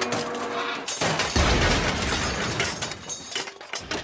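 A car crashes and scrapes over the ground with crunching metal.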